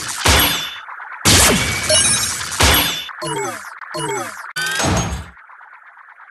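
Spinning tops clash with loud metallic crashes and whooshes.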